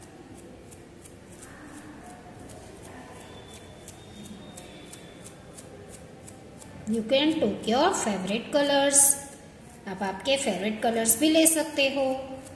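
A toothbrush's bristles are flicked with a finger, spattering softly.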